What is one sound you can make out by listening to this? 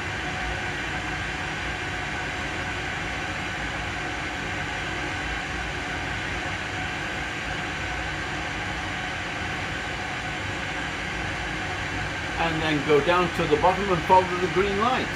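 A steady low rumble hums throughout.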